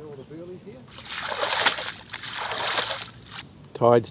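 Water splashes loudly as a net is pulled up close by.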